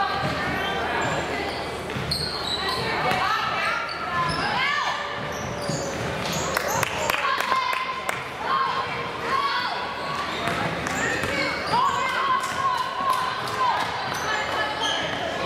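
Young girls shout and call out in an echoing gym.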